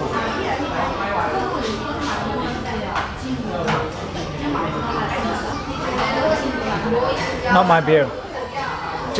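A crowd of diners chatters in a busy room.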